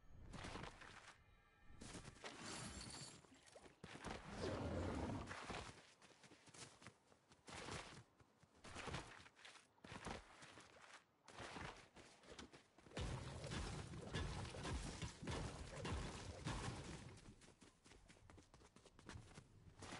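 Footsteps crunch over snow and grass.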